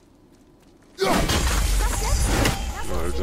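A heavy axe swings with a whoosh.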